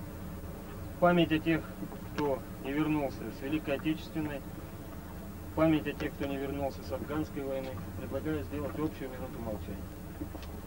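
A man speaks loudly and firmly outdoors, nearby.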